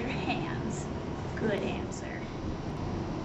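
A second young woman speaks into a handheld microphone.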